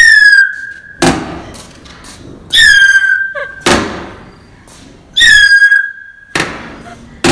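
Sharp knocks ring out, one after another.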